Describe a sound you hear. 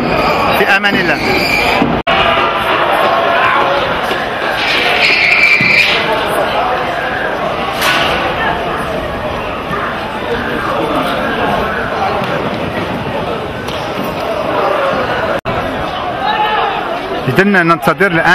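A large crowd chants and cheers outdoors.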